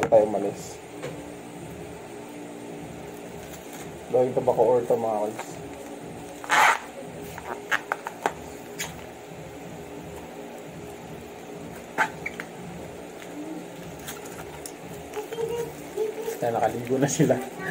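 A plastic bag crinkles and rustles in a man's hands.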